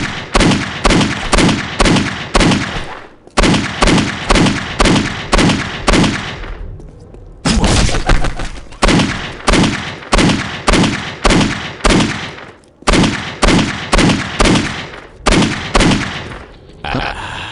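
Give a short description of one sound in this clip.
A revolver fires loud shots in quick, steady succession.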